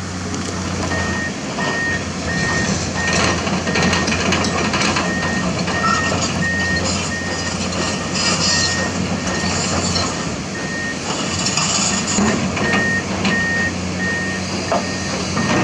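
A diesel hydraulic excavator engine rumbles under load.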